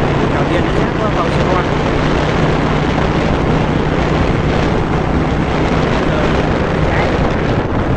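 A vehicle drives steadily along a road, with its engine humming.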